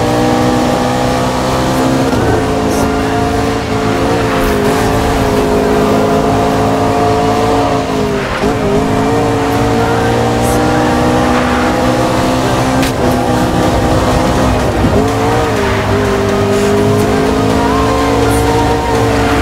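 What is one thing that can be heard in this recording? A racing car engine roars at high revs, with brief dips as it shifts gears.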